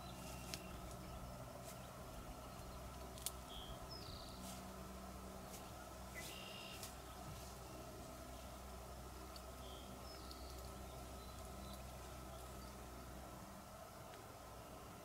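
Grass and leaves rustle as a fawn steps through them.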